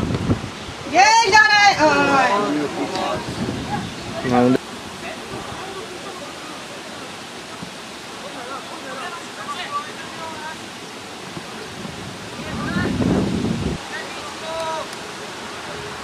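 Young men shout loudly outdoors across a field.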